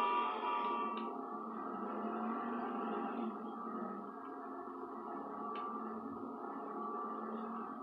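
A car engine revs steadily.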